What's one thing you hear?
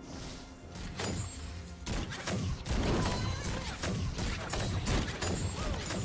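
Video game characters clash with sharp hits.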